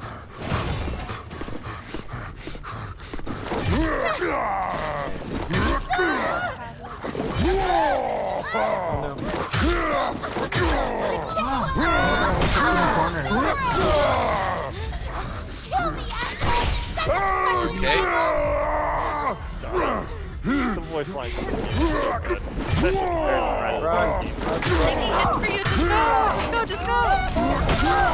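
A man talks with animation through a microphone.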